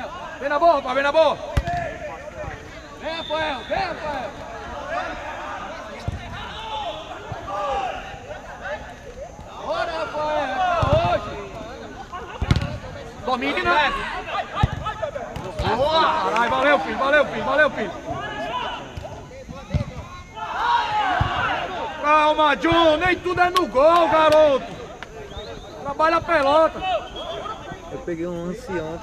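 Several men shout and call out to each other across an open pitch.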